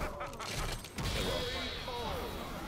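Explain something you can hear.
A deep knockout blast booms out.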